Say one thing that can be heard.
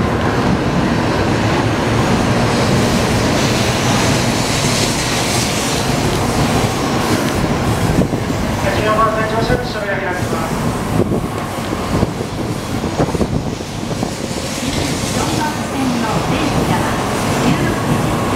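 A high-speed train rushes past close by with a loud, steady roar of wind and wheels.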